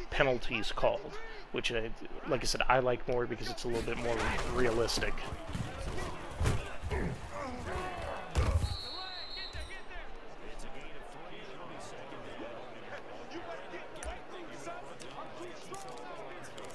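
A stadium crowd roars and cheers.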